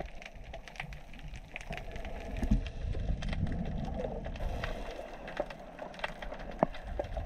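Small clicks and crackles sound underwater.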